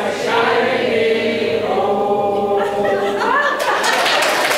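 A crowd sings together in a large echoing hall.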